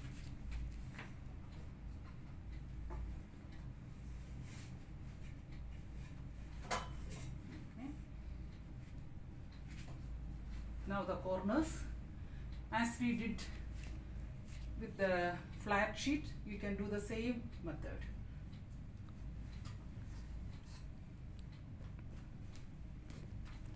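A thick blanket rustles softly as it is tucked and smoothed.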